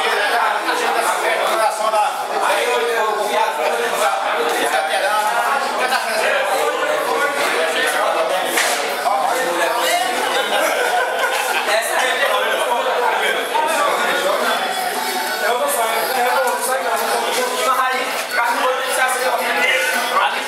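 Several men talk and laugh over one another.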